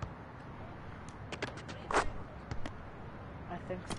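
A basketball rim clangs and rattles from a dunk.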